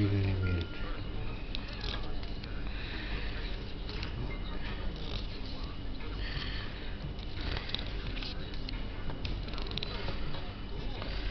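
Paper pages rustle and flap as a book is flipped through quickly.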